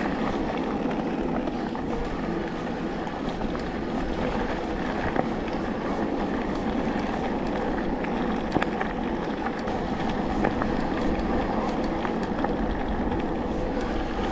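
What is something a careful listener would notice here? A bicycle rattles and clicks over small bumps.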